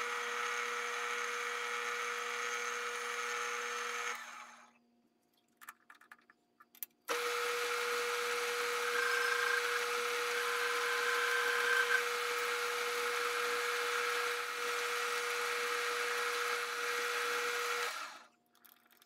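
A lathe motor whirs with a steady high hum, stopping and starting again.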